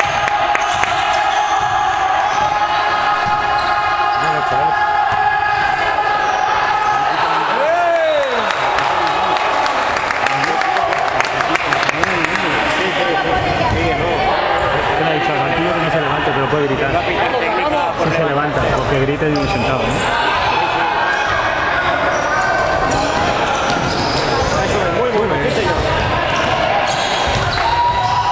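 Spectators chatter and call out nearby.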